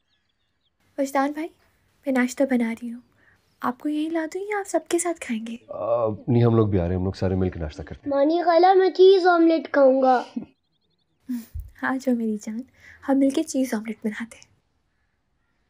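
A young woman speaks calmly and warmly nearby.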